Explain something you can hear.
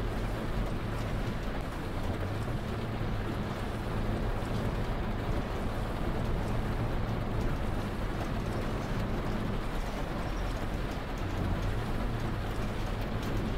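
Rain patters on the windshield.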